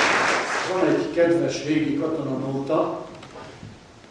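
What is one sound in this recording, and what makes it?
A middle-aged man speaks into a microphone.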